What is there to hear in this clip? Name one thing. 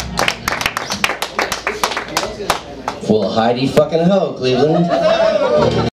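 A band plays live rock music with electric guitars.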